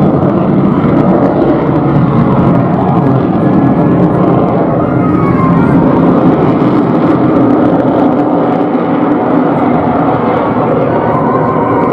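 A jet engine roars loudly overhead, rumbling steadily.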